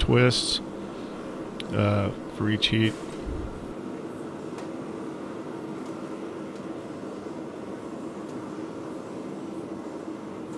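A gas forge roars steadily in the background.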